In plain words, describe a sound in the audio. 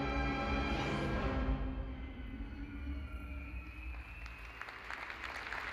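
An orchestra plays a swelling, sustained passage in a large hall.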